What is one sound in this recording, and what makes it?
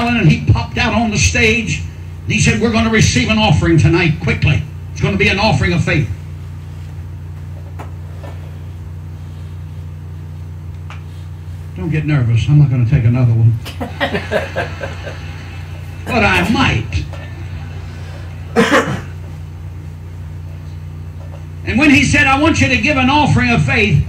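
An elderly man preaches with animation into a microphone, heard through loudspeakers in a large echoing hall.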